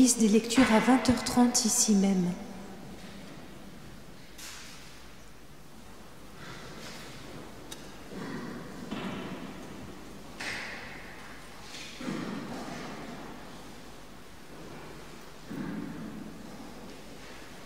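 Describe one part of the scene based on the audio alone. Footsteps shuffle softly on a stone floor.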